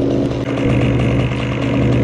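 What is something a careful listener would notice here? A chainsaw engine idles close by.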